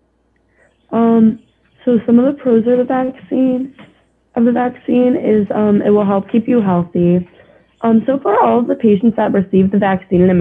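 A young woman speaks calmly through an online call.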